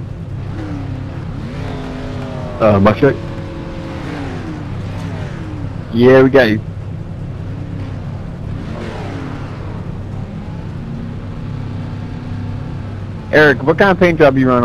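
A race car engine idles with a low, steady rumble.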